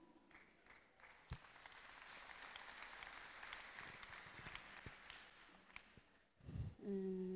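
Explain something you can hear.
A large crowd cheers in a big hall.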